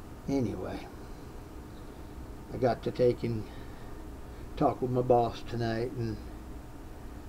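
An elderly man speaks calmly in short bursts, close to the microphone.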